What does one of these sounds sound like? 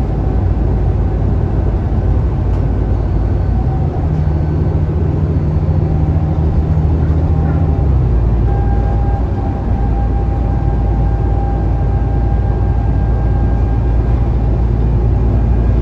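The bus body rattles softly over the road.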